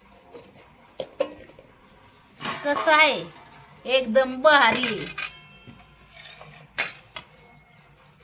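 A metal ladle clinks against steel dishes.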